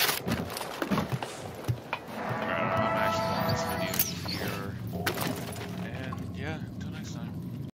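Boots clank on metal ladder rungs.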